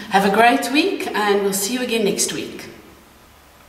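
A woman speaks cheerfully and close by.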